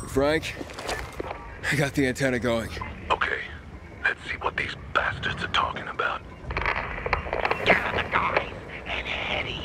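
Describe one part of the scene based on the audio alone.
A man speaks through a crackly handheld radio.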